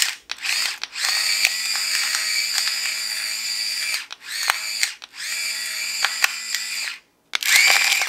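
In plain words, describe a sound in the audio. An electric grinder whirs steadily as it grinds pepper.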